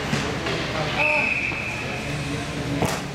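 A referee's whistle blows in an echoing rink.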